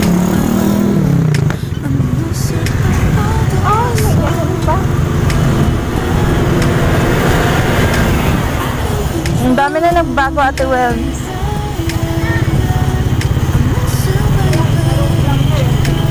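Motorcycles and tricycles drive past nearby.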